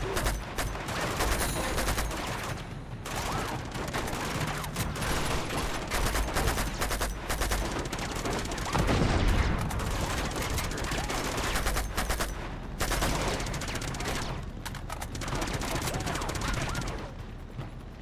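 Gunfire cracks rapidly in bursts.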